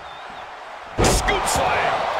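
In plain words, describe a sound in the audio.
A body slams hard onto a wrestling ring mat.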